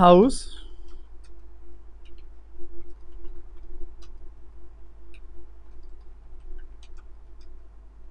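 Keys click on a keyboard as a man types.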